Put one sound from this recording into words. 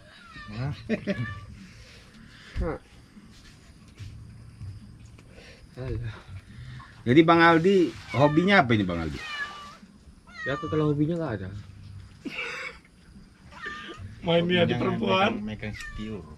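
Young men talk and laugh together in a relaxed way, close by.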